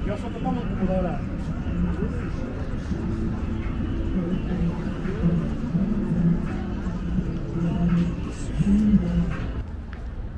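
A man talks nearby, outdoors on a city street.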